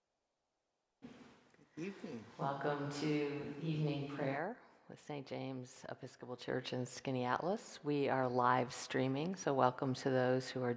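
A middle-aged woman speaks calmly into a close microphone.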